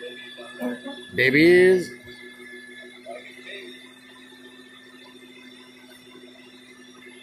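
A vacuum hums steadily through a hose.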